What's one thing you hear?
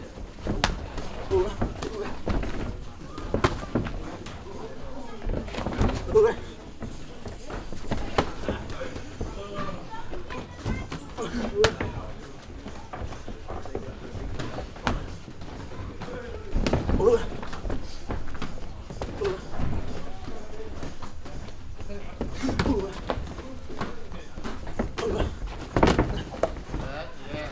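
Gloved punches and kicks thud sharply against pads.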